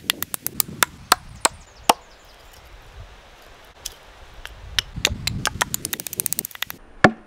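A hatchet chops a thin wooden stick against a wooden stump with sharp knocks.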